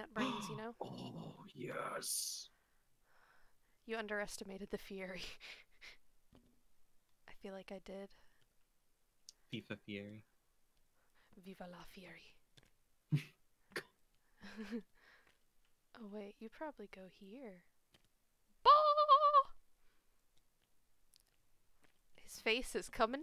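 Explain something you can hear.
A young woman talks casually and laughs into a close microphone.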